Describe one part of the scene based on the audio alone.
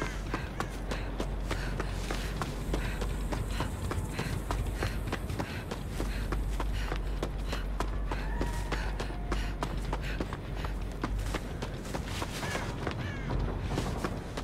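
Quick footsteps patter over the ground.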